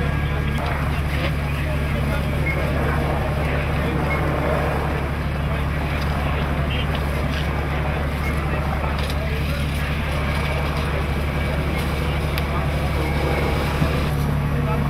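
Men talk to each other outdoors.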